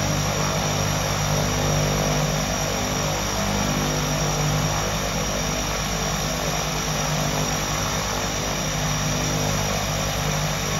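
A twin-engine turboprop idles with a steady whine.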